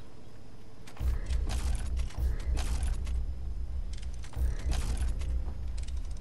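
A heavy clanking upgrade sound booms and rings.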